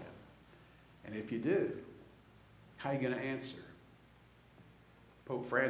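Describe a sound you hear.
A man speaks slowly into a microphone in a large echoing hall.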